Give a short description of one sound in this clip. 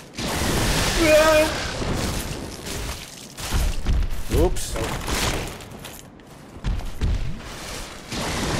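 Huge wings beat with heavy whooshing gusts.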